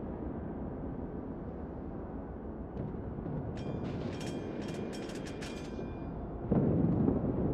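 Sea water rushes steadily past a ship's hull with a low rumble.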